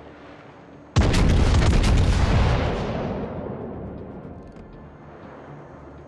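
Heavy naval guns fire in a loud booming salvo that slowly rumbles away.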